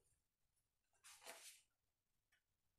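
A sheet of paper rustles.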